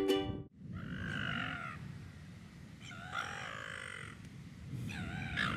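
A young man snores loudly and raspily close by.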